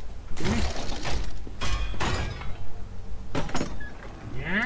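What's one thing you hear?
A heavy sword swings and strikes with sharp clanks.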